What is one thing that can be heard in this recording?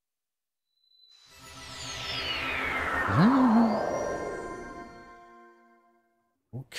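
A shimmering magical whoosh swells and sweeps downward in pitch.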